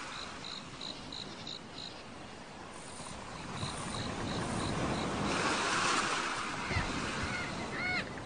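Water gently laps and splashes around a swimmer.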